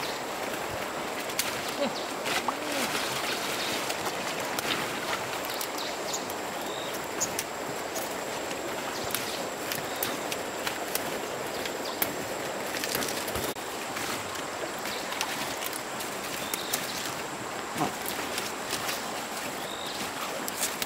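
A shallow stream burbles over stones.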